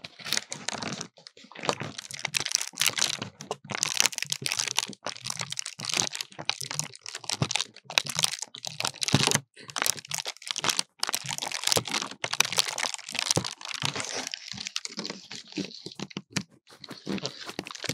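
A paper lantern crinkles and rustles very close.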